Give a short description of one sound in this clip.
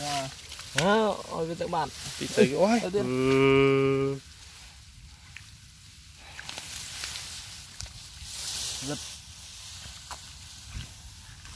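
Hands squelch through wet mud.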